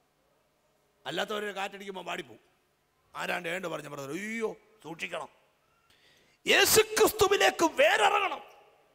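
A man preaches with animation into a microphone over a loudspeaker.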